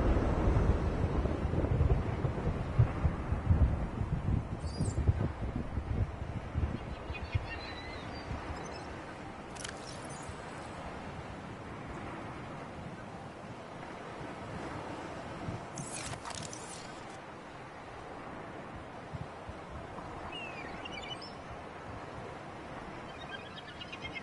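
Ocean waves splash and lap, louder at first and then settling to a steady wash.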